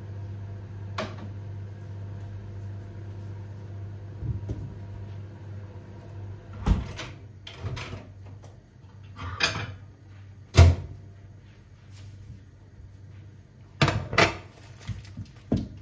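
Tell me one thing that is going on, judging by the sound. Dishes and containers clink and knock.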